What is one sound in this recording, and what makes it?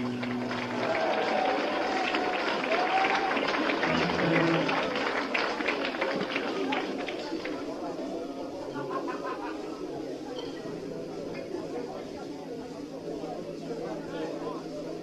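Electric guitars play loud, distorted rock.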